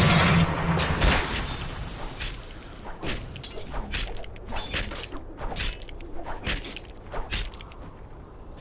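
Magic blasts and weapon hits crack and clash in quick bursts, then die away.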